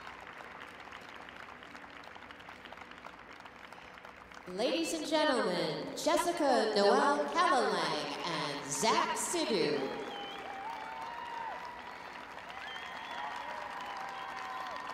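A crowd applauds in a large echoing arena.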